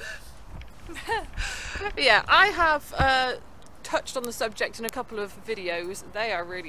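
A young woman talks cheerfully close to the microphone.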